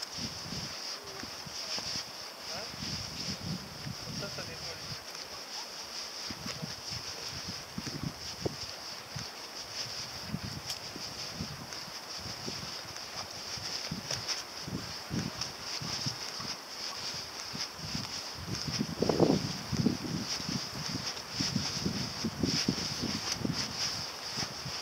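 Wind blows across open ground outdoors.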